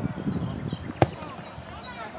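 A football is kicked with a sharp thud.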